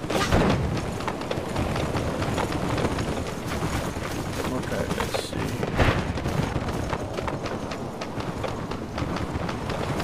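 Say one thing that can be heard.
Footsteps patter quickly on wooden boards.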